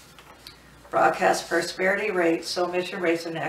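A woman reads aloud calmly, close by.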